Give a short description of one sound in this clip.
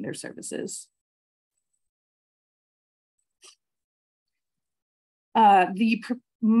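A woman speaks calmly through an online call microphone, with pauses.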